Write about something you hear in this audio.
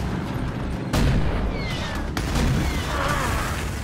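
An explosion roars and crackles.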